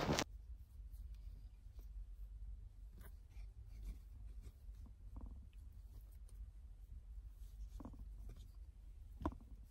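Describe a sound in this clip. A cloth pouch rustles as it is handled.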